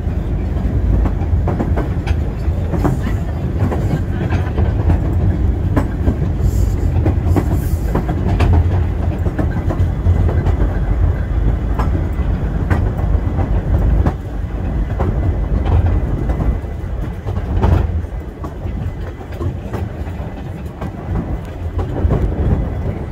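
A small train rumbles along steadily.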